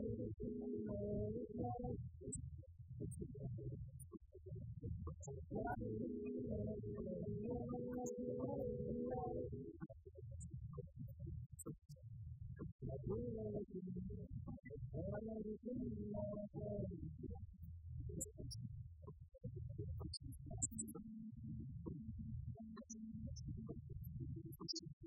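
Drums beat steadily.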